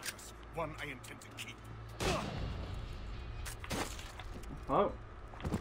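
A man speaks firmly and threateningly, close by.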